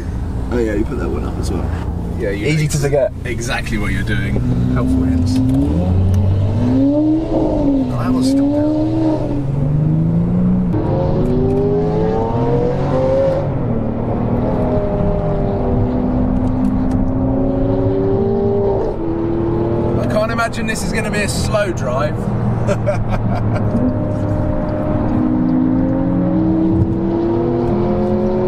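A sports car engine roars loudly close by, revving up and down as it shifts gears.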